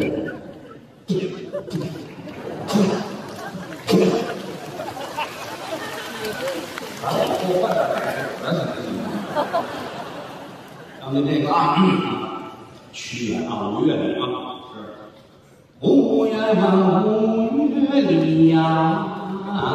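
An older man speaks with animation through a microphone in a large hall.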